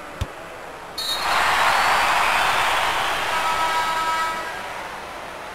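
A crowd roars loudly in a large arena, then fades.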